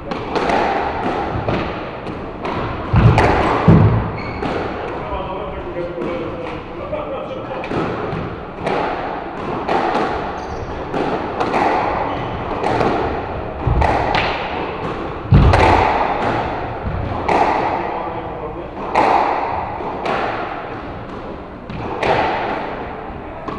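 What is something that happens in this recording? A squash ball smacks against the walls of an echoing court.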